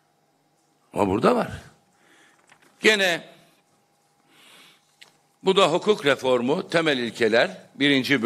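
A middle-aged man speaks forcefully into a microphone.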